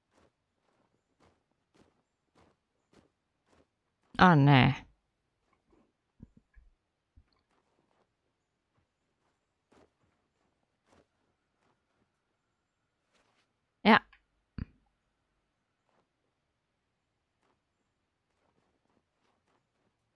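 Soft footsteps crunch through snow.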